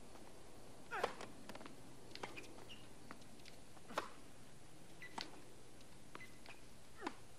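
A tennis ball is struck with a racket with sharp pops.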